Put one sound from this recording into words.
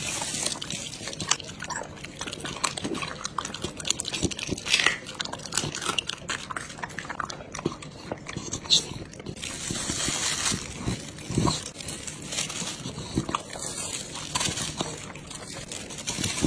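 A dog licks its lips with wet slurping sounds.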